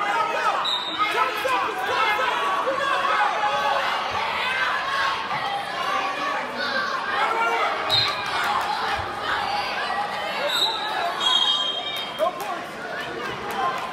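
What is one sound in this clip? Wrestlers thump and scuffle on a mat.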